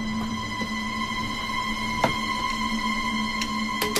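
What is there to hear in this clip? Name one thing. A briefcase thumps down onto a wooden table.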